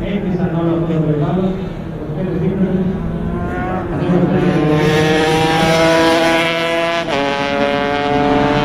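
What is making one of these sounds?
A motorcycle engine revs high and shifts gears as the bike races past.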